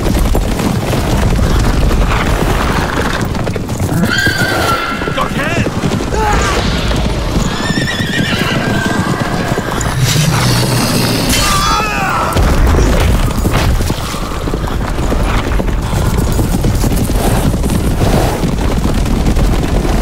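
Horses gallop with heavy, rumbling hoofbeats.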